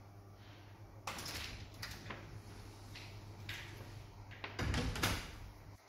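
Paper rustles and crinkles as it is handled and folded up close.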